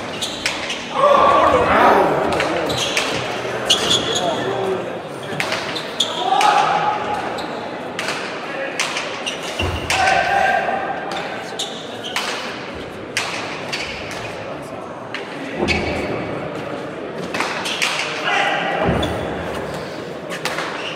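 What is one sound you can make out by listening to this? A hard ball smacks sharply against walls and rackets, echoing through a large hall.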